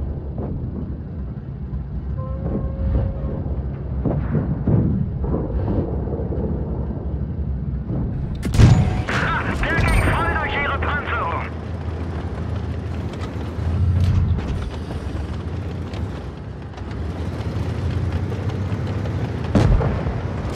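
A heavy tank engine rumbles low and steadily.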